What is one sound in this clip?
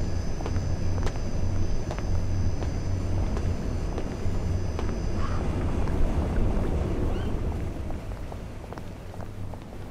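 Footsteps walk over stone paving.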